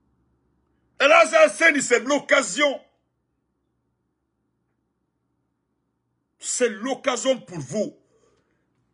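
A man speaks with animation close to a microphone, in two short bursts.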